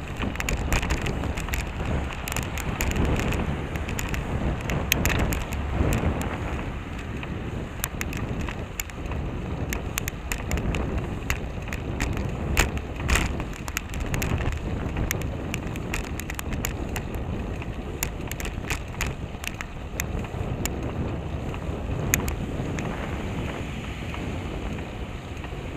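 A bicycle rattles and clicks over the bumpy road.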